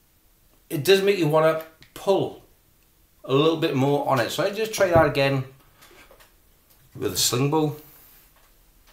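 A middle-aged man talks calmly, close by.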